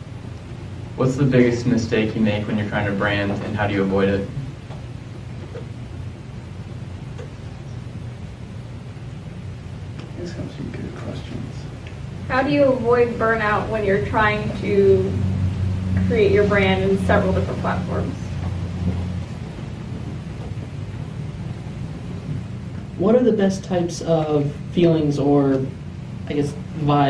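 A man speaks calmly into a microphone, in a room with a slight echo, pausing now and then.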